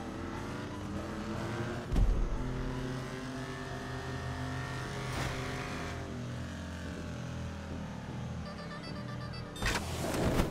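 A car engine revs and climbs in pitch as it speeds up.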